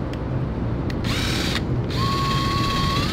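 A power drill spins a wire brush against metal with a high whine.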